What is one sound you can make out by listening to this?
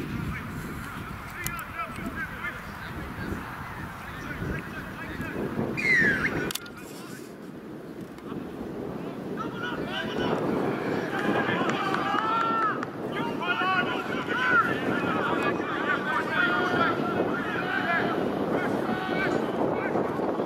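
Men shout and call out across a field during a game.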